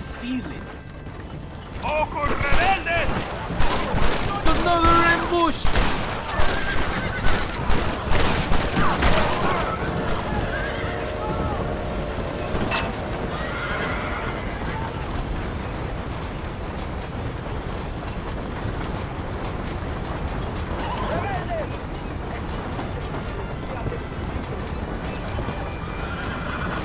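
Horse hooves and wagon wheels rumble steadily over a dirt track.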